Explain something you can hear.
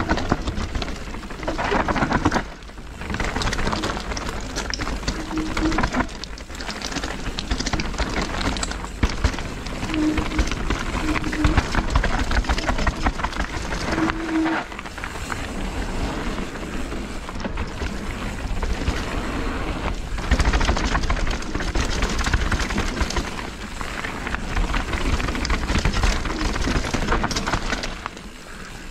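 Wind rushes past at speed.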